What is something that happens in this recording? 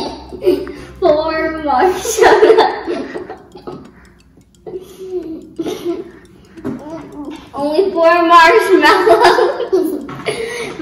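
A young girl laughs loudly with high squeals.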